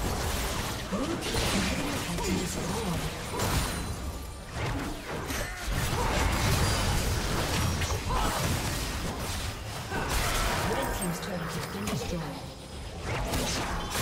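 Video game spell effects whoosh and crackle during a fight.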